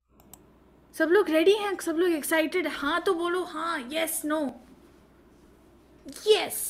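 A child speaks with animation over an online call.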